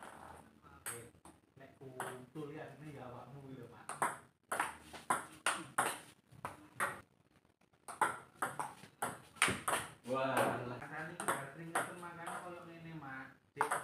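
A table tennis ball clicks back and forth across a table in quick sharp taps.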